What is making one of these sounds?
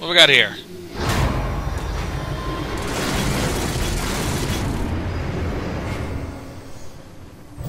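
A heavy mechanism rumbles and hums deeply.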